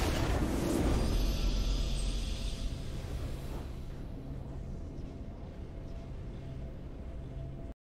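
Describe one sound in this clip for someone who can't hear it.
A triumphant fanfare of music swells and then softens.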